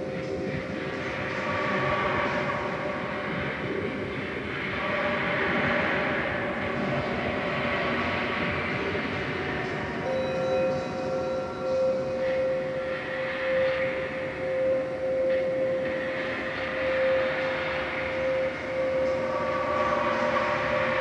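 A steady electronic tone hums along with the music.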